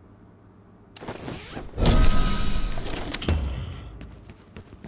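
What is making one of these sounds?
A metal supply crate clanks open with a loud burst of sound.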